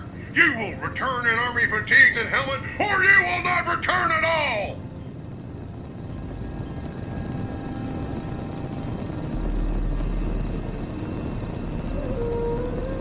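A machine hums steadily at low pitch.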